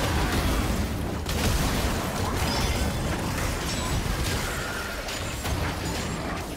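Magic blasts whoosh and crackle in a fast video game fight.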